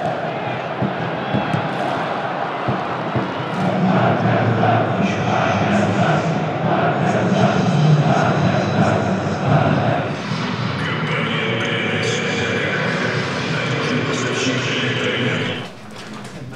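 A stadium crowd murmurs and chants loudly, outdoors.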